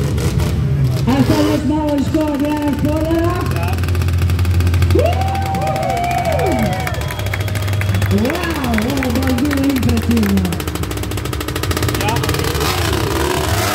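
A quad bike engine revs loudly nearby, rising and falling in pitch.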